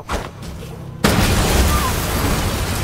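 A loud explosion bursts and roars.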